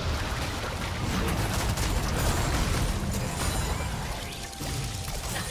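Magic spells crackle and burst during a game fight.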